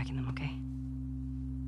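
A young woman speaks quietly and earnestly, close by.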